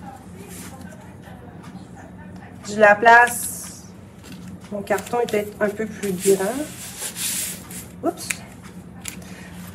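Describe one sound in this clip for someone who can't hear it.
A thin plastic sheet crinkles as hands press it flat.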